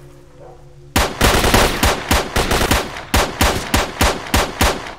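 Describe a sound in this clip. A pistol fires shot after shot in quick bursts.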